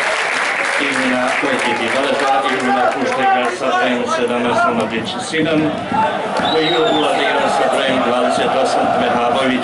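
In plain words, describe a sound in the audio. A crowd chants and sings loudly in unison.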